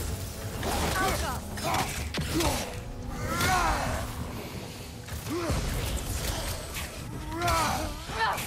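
Heavy blows and magical blasts crackle during a fight.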